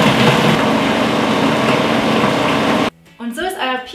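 A food processor whirs loudly as it blends.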